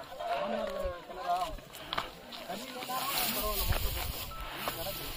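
Footsteps scuff on rock and grass.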